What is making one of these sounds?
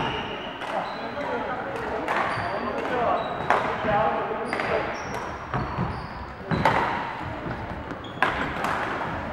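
Shuttlecocks are struck with rackets in sharp pops, echoing in a large hall.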